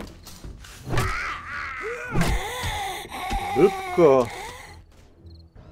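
A woman-like creature snarls and shrieks close by.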